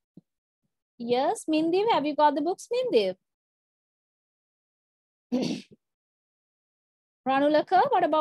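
A woman speaks clearly through an online call.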